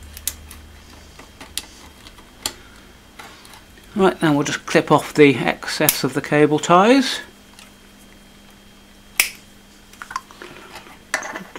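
Small tools click and tap against metal.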